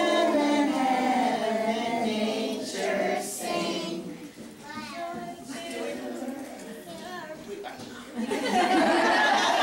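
A small boy talks close by in a high voice.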